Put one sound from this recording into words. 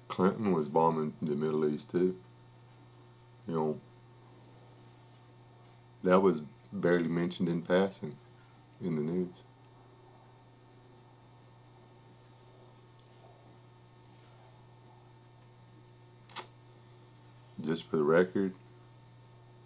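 A middle-aged man talks calmly close to a microphone, in short bursts with pauses.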